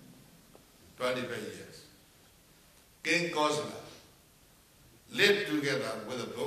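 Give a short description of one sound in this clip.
An elderly man speaks slowly and calmly into a close microphone, with long pauses.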